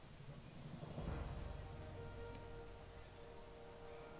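A soft chime rings and fades.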